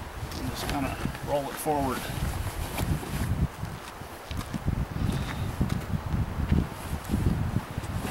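Heavy canvas rustles and flaps as it is spread out.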